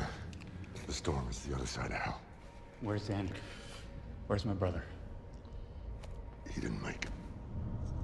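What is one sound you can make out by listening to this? A middle-aged man speaks hoarsely and strained, close by.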